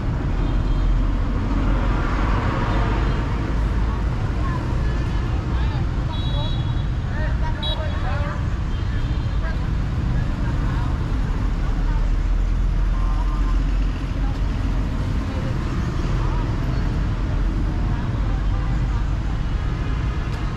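Motorbikes and cars drive past steadily on a busy street outdoors.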